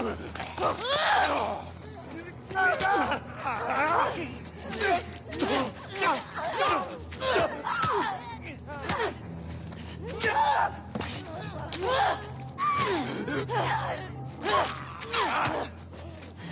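Blows thud and smack in a struggle.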